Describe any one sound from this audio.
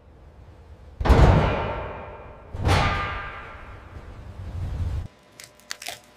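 Metal panels clang and ring out in a large echoing space.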